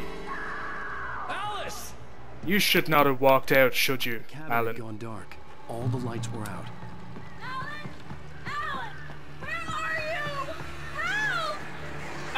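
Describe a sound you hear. A man shouts in distress.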